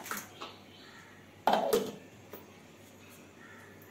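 A metal lid clinks onto a steel jar.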